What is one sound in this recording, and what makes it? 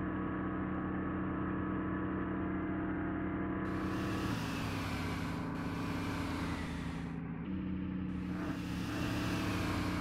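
A diesel bus engine drones while cruising at speed, its pitch shifting now and then.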